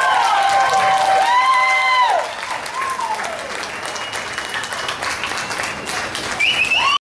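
A crowd cheers with loud, high whoops.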